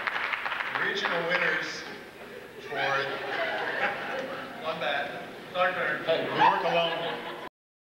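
A man speaks into a microphone in a large hall.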